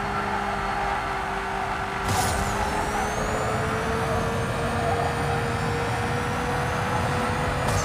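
Tyres screech while a car drifts.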